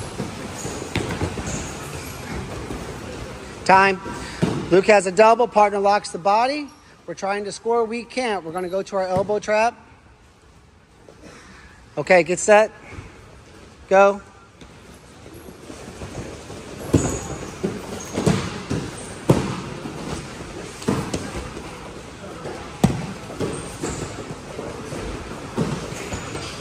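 Wrestlers' bodies thud onto a padded mat.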